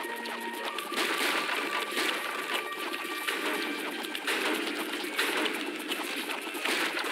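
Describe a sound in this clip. Thick liquid bubbles and fizzes steadily.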